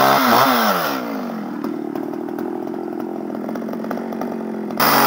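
A chainsaw idles.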